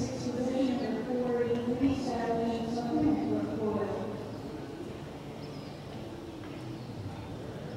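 A horse's hooves thud softly on dirt at a walk.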